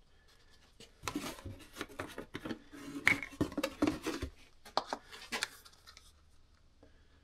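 A plastic jug rustles and clicks as it is handled.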